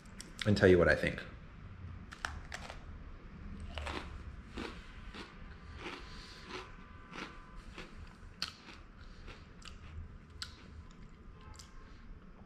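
A young man bites and chews a crunchy cookie.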